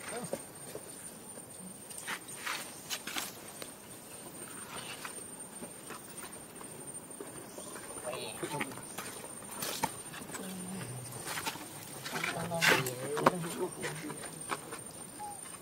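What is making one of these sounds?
Small monkeys scratch and pick quietly at fur close by.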